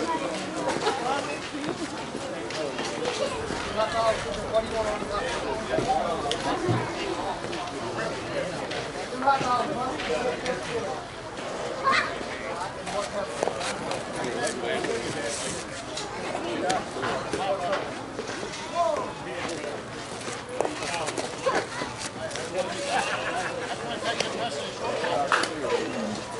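Men talk and call out nearby outdoors.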